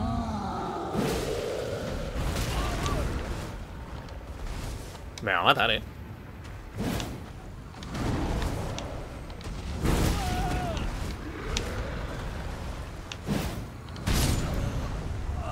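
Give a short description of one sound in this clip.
Heavy weapon blows thud and clang repeatedly.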